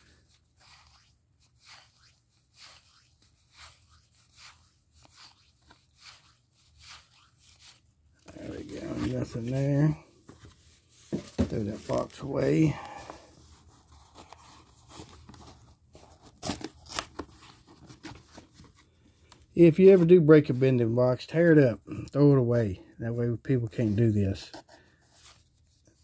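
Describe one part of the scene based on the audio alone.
Stiff paper cards flick and rustle as they are shuffled by hand.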